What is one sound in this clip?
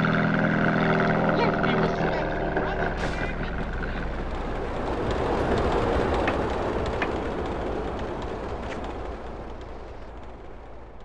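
Engines rumble from passing cars.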